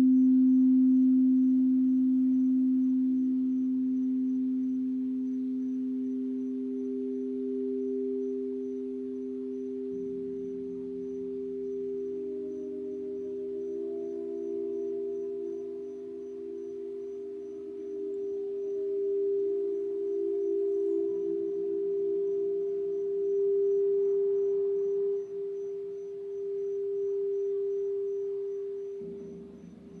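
Singing bowls ring with steady, humming tones that swell and slowly fade.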